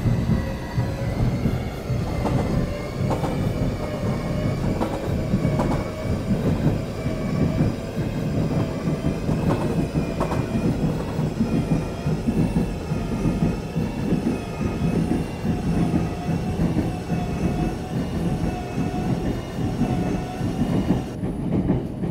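A train's electric motor whines, its pitch shifting up and down.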